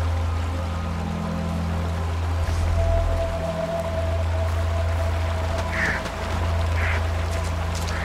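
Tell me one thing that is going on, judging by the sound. Footsteps crunch over grass and rocks.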